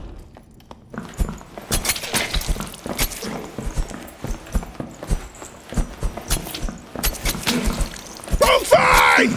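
Blades clash and strike in quick, sharp blows.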